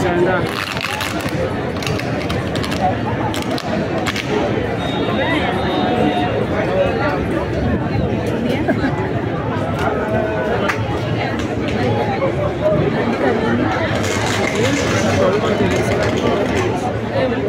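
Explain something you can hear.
A large crowd shouts and murmurs outdoors.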